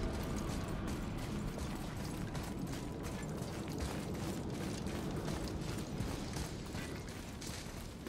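Heavy footsteps thud on stone steps.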